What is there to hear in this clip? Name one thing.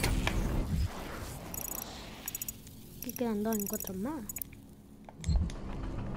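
Short electronic menu beeps chirp in quick succession.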